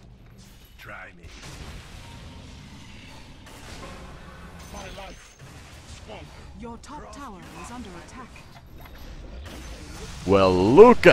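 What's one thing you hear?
Magic spells crackle and clash in a game fight.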